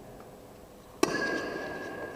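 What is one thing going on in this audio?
A bat cracks sharply against a ball in a large echoing hall.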